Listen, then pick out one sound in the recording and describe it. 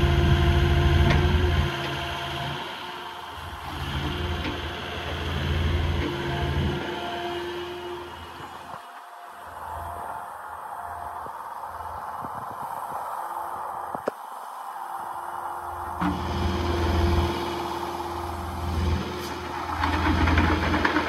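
Hydraulics whine as an excavator arm moves.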